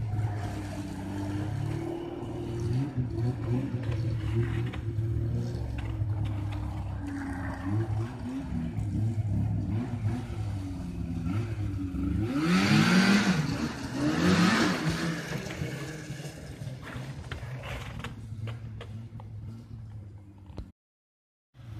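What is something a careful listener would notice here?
A snowmobile engine drones outdoors, revving up and down as it passes and then fading into the distance.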